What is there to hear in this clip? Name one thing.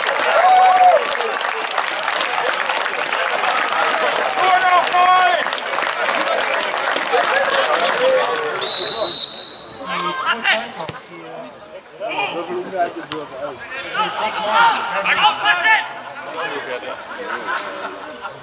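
Men on the sideline talk loudly nearby.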